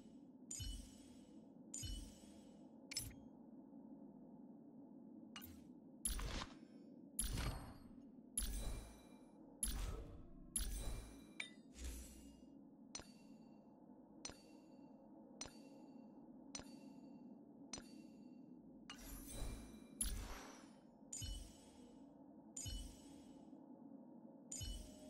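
Soft menu clicks and chimes sound again and again, about once a second.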